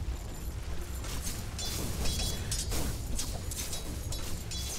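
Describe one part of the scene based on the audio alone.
Spell effects crackle and whoosh in a game battle.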